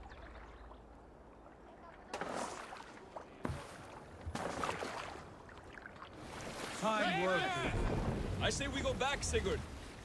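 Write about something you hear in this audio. Water splashes against a wooden boat.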